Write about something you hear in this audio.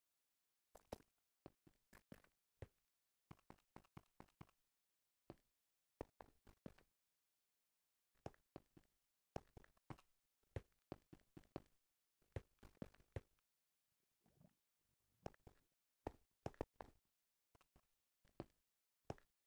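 Game footsteps tap on stone.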